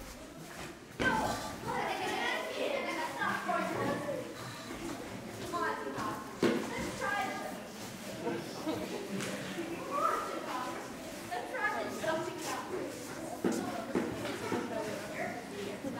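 A boy speaks with animation.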